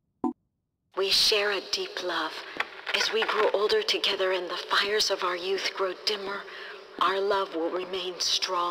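A man talks on a phone.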